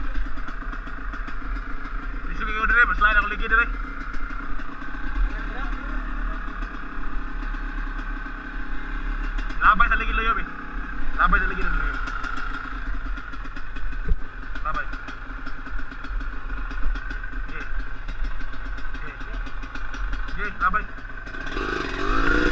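A motorbike engine idles steadily close by.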